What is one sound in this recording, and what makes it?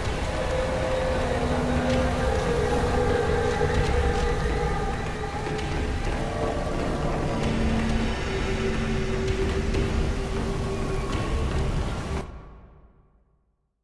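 A low, eerie ambient drone and rumble fill the air, then fade out.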